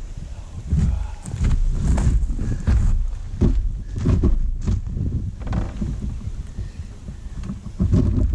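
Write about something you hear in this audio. Heavy gel blocks thud and slide on a table top.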